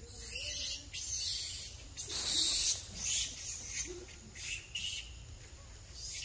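A monkey chews on food.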